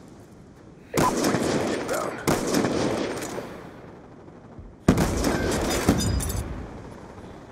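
A rifle fires loud shots that boom and echo away.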